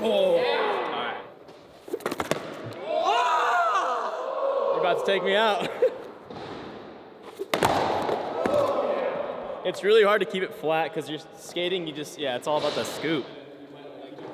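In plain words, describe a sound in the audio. A young man talks and laughs close by in an echoing hall.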